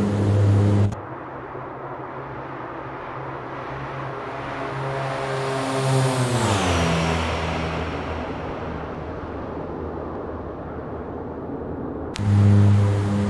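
A propeller plane roars past overhead, its pitch dropping as it moves away.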